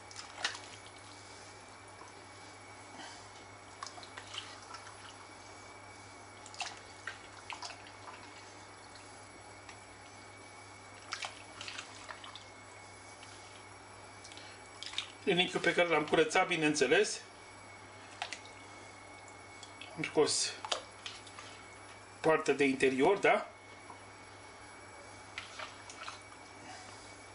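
Wet meat squelches as a hand grabs pieces from a bowl.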